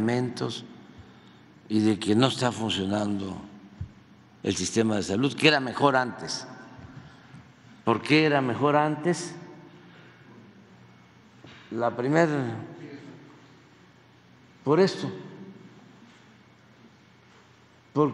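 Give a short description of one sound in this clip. An elderly man speaks slowly and calmly into a microphone, with pauses, in a large echoing hall.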